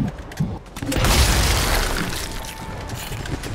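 A rifle fires a loud shot that echoes away.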